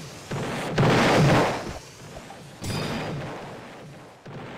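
A cannon fires with loud booming blasts.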